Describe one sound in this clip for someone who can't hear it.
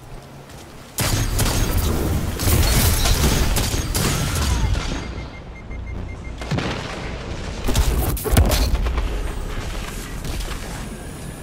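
Electric explosions roar and fizz.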